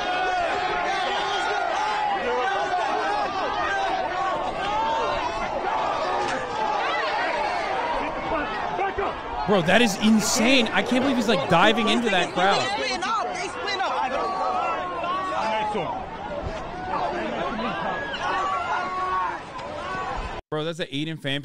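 A crowd of people shouts and argues excitedly outdoors.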